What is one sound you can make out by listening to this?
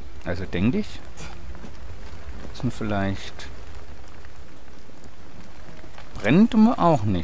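Flames roar and crackle close by.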